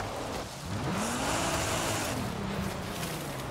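Tyres skid and crunch over dirt.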